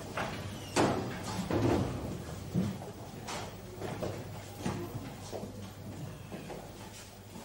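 Several people walk with footsteps tapping on a hard floor.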